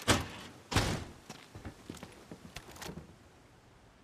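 Footsteps crunch over debris on a wooden floor.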